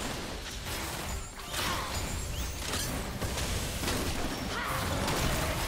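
Game characters' attacks clash with sharp hits.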